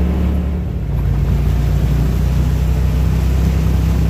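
Mud and water splash under tyres.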